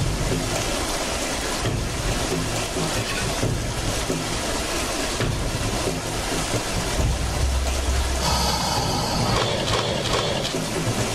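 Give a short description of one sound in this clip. Rushing water roars steadily.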